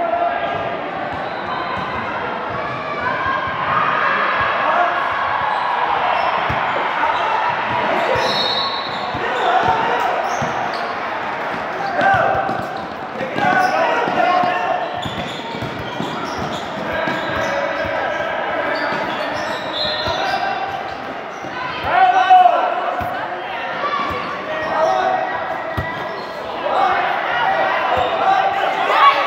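A crowd of girls and adults shout and cheer in a large echoing hall.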